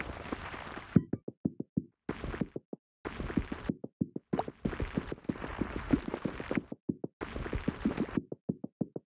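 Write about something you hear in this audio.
Small balls clatter and click as they roll and tumble.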